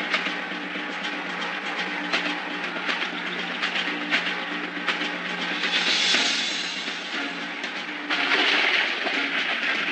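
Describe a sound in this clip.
Rubble crashes and crumbles to the ground.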